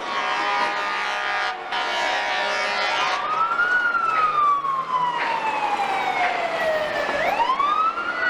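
Cars drive by on a city street.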